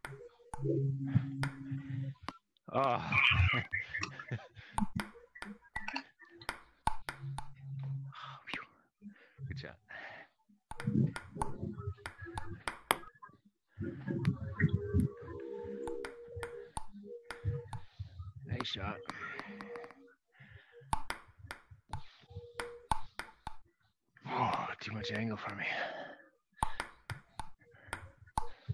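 A ping-pong ball clicks sharply against paddles and a table in a quick back-and-forth rally.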